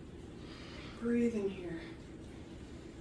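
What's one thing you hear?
A woman speaks a few words calmly nearby.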